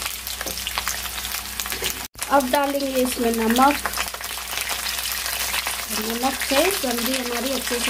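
Vegetables sizzle and crackle in hot oil.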